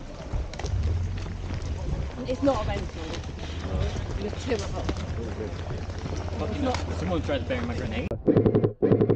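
Men talk with each other outdoors.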